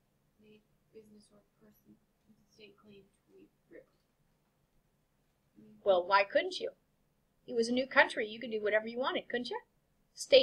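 A woman lectures with animation through a microphone.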